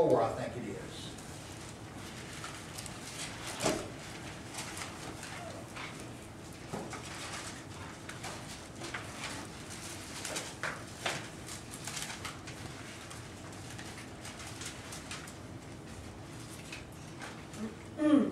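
An elderly man speaks briefly and calmly into a microphone.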